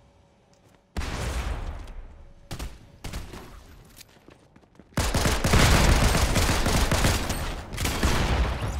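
Gunfire from a video game rifle bursts loudly.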